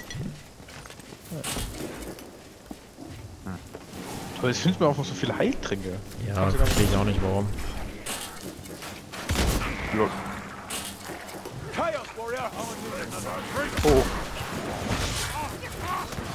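A gun fires loud single shots.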